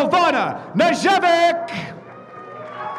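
A young man announces loudly through a loudspeaker in a large echoing hall.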